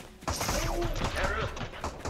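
A rifle fires a shot.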